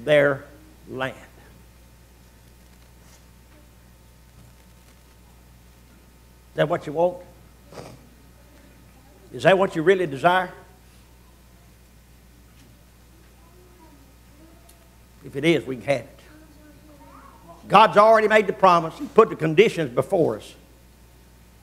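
A man speaks calmly into a microphone, in short bursts with long pauses.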